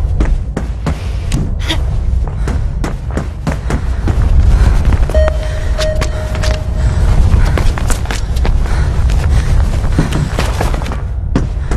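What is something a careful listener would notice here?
Footsteps pound quickly and evenly while running.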